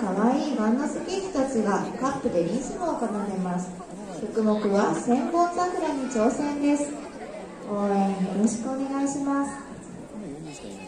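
Young girls sing together.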